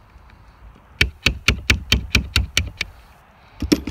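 Small metal parts of a mechanism click rapidly as hands work them.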